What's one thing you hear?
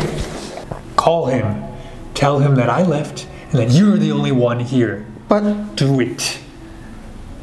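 A man speaks intensely and threateningly up close.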